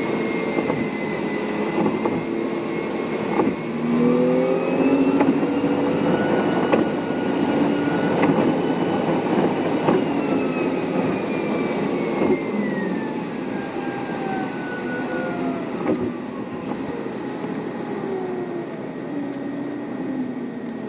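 A bus engine hums and whines, rising and falling in pitch as it drives.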